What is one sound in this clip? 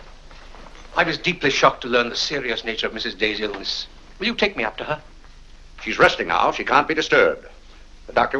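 An elderly man speaks firmly.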